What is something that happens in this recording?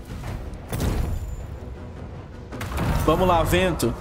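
Flaming missiles whoosh through the air.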